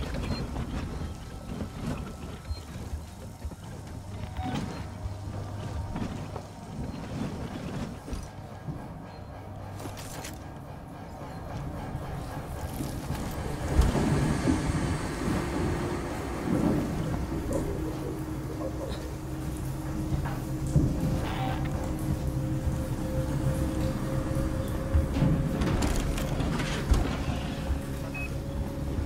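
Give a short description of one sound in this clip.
A small flame hisses and crackles softly.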